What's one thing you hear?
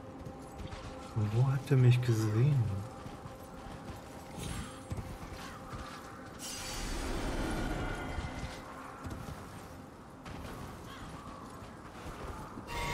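A horse's hooves thud on the ground at a trot.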